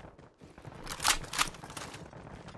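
A short clicking sound marks an item being picked up.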